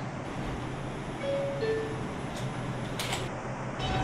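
Subway train doors slide shut.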